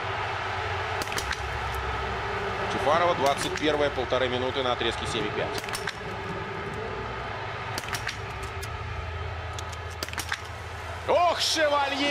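Rifle shots crack one at a time.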